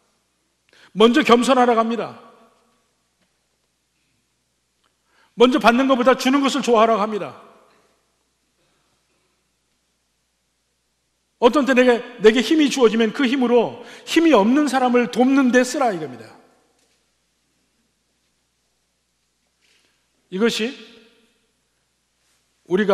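A middle-aged man speaks with animation through a microphone, in bursts with long pauses.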